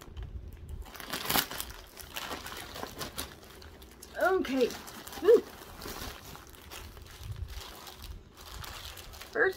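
Plastic packaging crinkles and rustles in a woman's hands.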